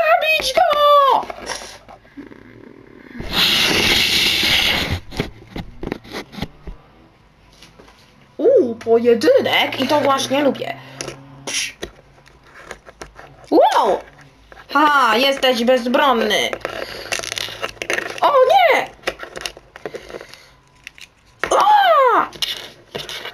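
Small plastic toy pieces click and clack together as they are handled.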